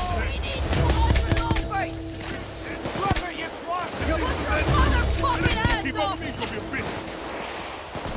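Gunshots crack rapidly, one after another.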